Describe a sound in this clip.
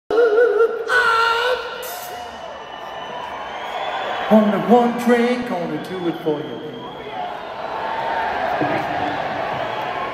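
A crowd cheers and screams throughout the arena.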